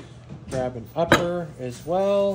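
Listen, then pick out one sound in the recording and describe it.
An aluminium part is set down on a wooden bench with a knock.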